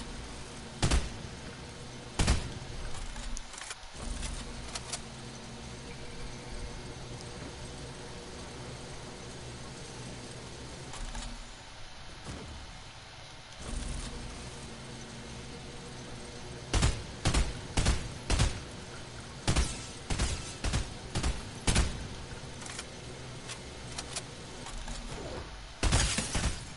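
A gun fires sharp shots in quick bursts.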